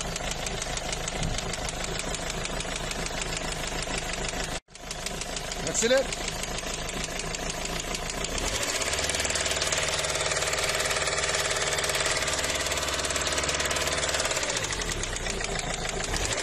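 A diesel engine idles with a steady, rattling clatter close by.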